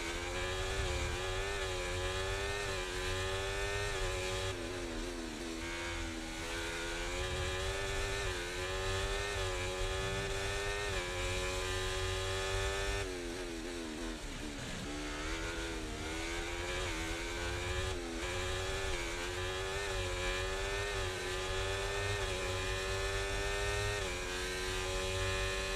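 A racing car engine screams at high revs, rising through the gears and dropping sharply when braking.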